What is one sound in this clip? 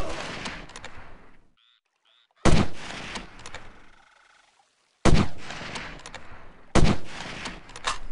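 A sniper rifle fires loud single shots that echo away.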